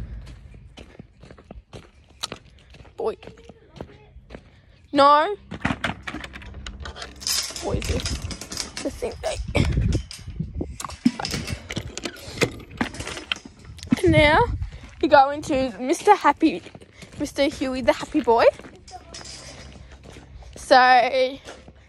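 A young girl talks close to the microphone, with animation.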